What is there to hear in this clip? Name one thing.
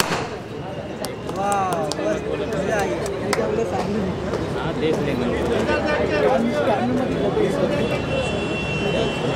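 A crowd of women and men chatter and laugh excitedly nearby.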